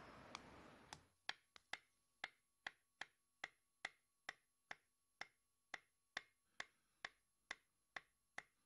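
A pen taps steadily on a wooden desk.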